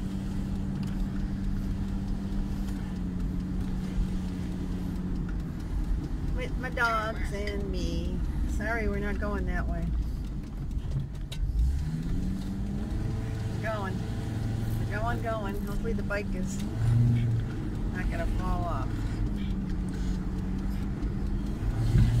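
A camper van's engine hums as it drives along a street.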